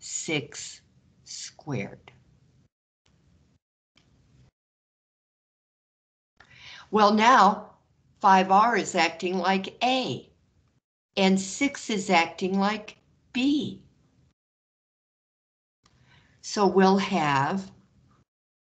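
A woman explains calmly through a microphone, in short bursts with pauses.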